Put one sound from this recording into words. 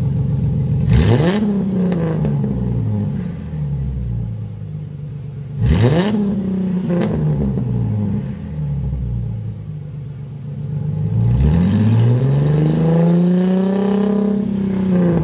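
A car engine revs sharply and the exhaust roars, then falls back.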